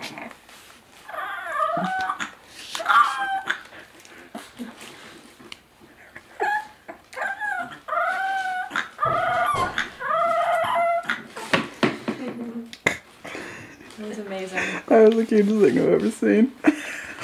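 A bulldog puppy howls in high, wavering yowls.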